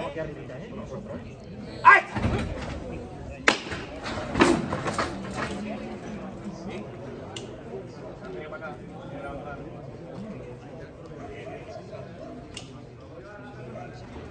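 A crowd of people murmurs and talks outdoors.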